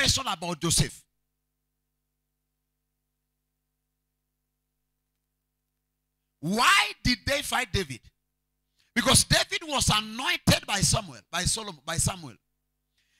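A man preaches with animation into a microphone, his voice amplified through loudspeakers.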